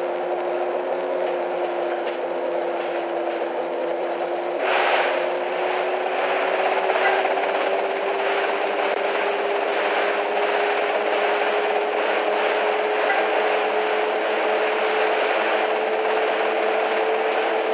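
A motorboat engine drones steadily, rising slightly in pitch.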